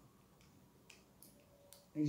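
Scissors snip through tape.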